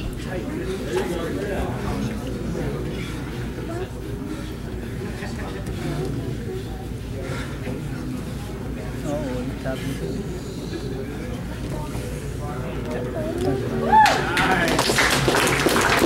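Bodies shift and rub on a padded mat.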